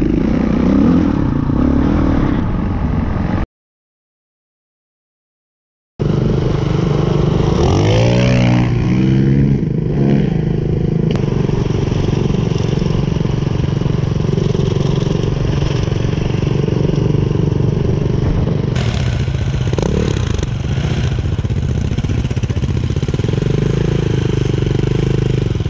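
A dirt bike engine drones close by.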